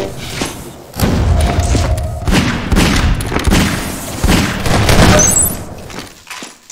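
Revolver shots ring out loudly, one after another.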